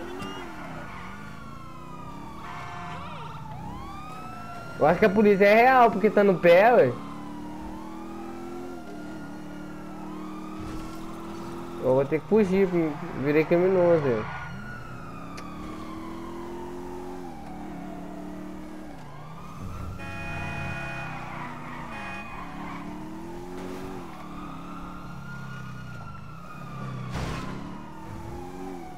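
A sports car engine revs up and drops in pitch as it shifts gears, again and again.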